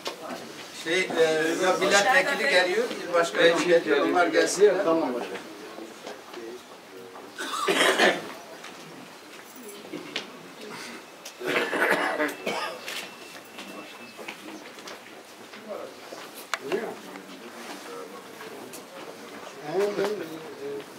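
A crowd of men murmurs and chatters nearby outdoors.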